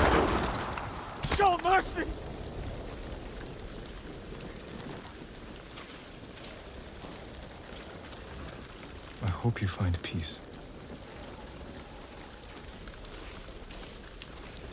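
Footsteps splash slowly on wet ground.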